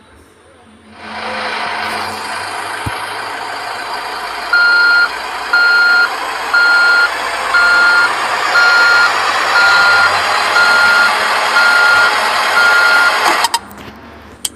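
A heavy roller's diesel engine rumbles and whines.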